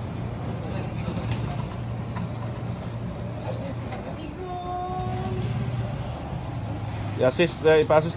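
Wheelchair wheels roll over concrete.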